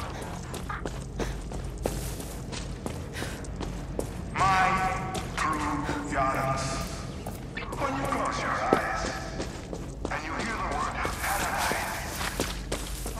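Footsteps crunch on gravel and grass.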